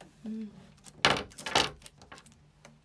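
Knocks and thumps come close by.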